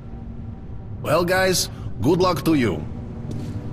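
A second man answers briefly and calmly.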